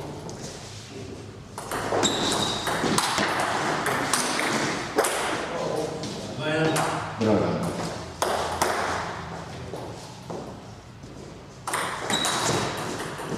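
A table tennis ball clicks against paddles and the table in a quick rally.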